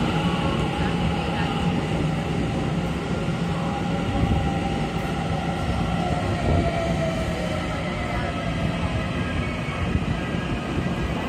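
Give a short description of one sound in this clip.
Train wheels screech faintly on the rails.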